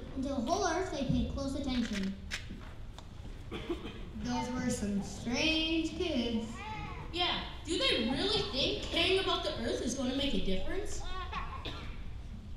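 Children speak and sing loudly in a large echoing hall.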